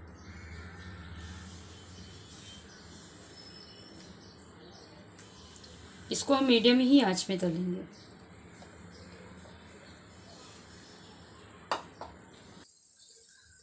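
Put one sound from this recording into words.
Hot oil sizzles and bubbles steadily.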